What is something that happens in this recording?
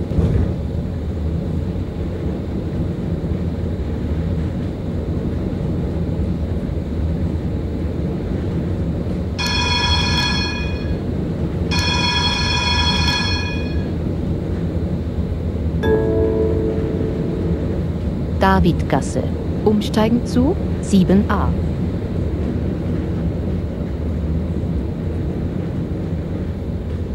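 A tram rumbles steadily along its rails.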